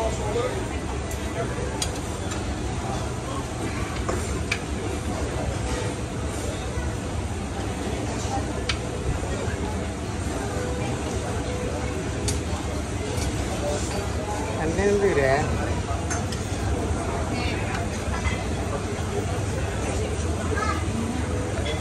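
Serving tongs click against plates and dishes.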